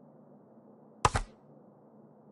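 A game menu gives a short, sharp click as a selection is made.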